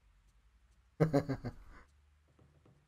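A man laughs into a close microphone.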